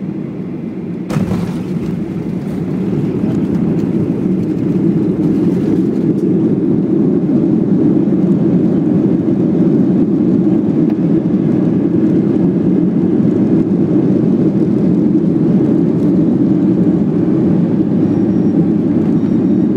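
Jet engines roar steadily inside an airliner cabin, growing louder as the plane speeds along the runway.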